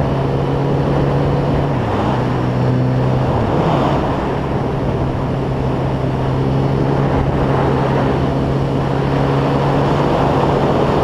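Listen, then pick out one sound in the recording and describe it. A motorcycle engine hums steadily, its pitch dipping briefly at gear changes.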